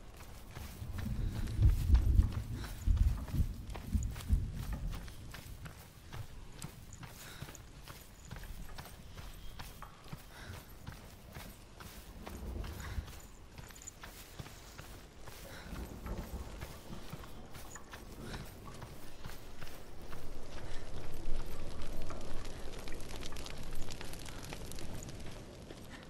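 Footsteps crunch on loose gravel and stones.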